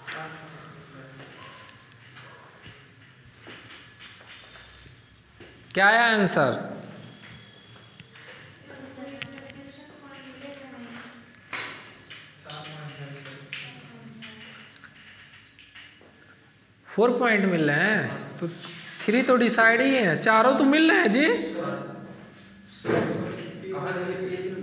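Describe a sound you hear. A young man speaks close by, calmly and at times loudly.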